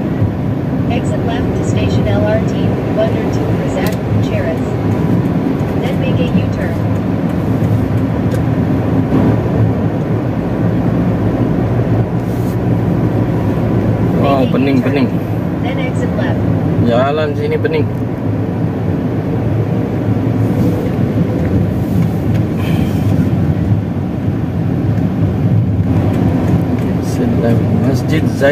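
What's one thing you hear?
Road noise rumbles inside a moving car.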